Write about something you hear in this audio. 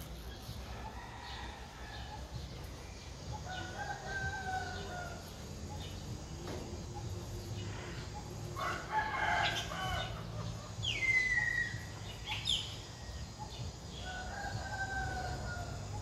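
Birds chirp and call nearby.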